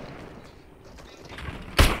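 A pickaxe strikes metal with a sharp clang.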